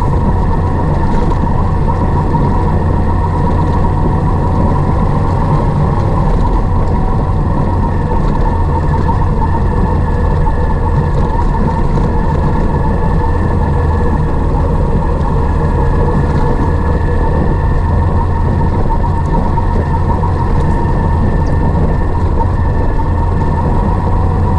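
Tyres rumble over a rough gravel road.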